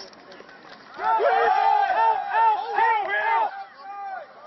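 Young men cheer and shout loudly.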